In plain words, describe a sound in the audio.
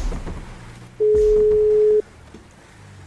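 A phone call rings with a steady beeping tone.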